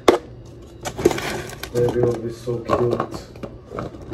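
Plastic containers knock together.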